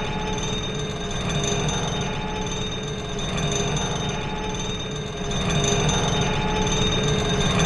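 A metal cage lift rumbles and rattles steadily as it moves.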